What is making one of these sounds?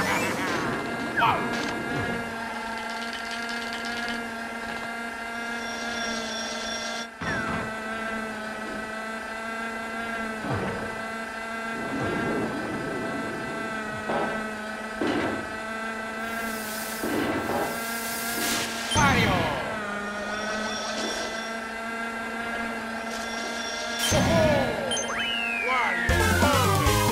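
A kart engine hums steadily.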